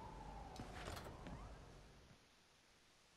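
A door opens with a sharp creak and click.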